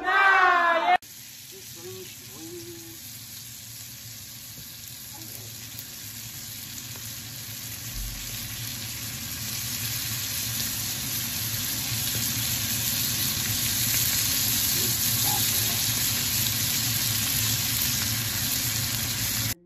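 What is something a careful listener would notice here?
Shrimp sizzle and hiss in a hot pan.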